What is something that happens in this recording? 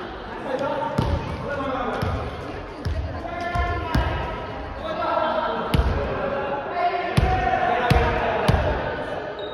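A volleyball is struck with sharp slaps in a large echoing hall.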